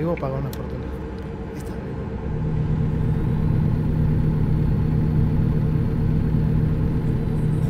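A truck engine drones steadily and grows louder.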